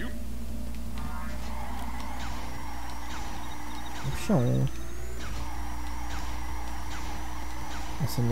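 Short whooshing bursts sound again and again as a kart boosts.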